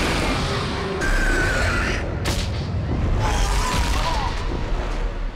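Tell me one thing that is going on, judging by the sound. A large winged beast shrieks loudly.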